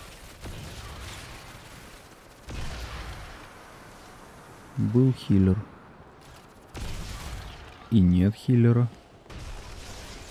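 Rifle shots crack and echo.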